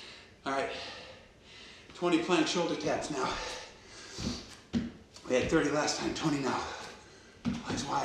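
A man speaks nearby, calmly and clearly.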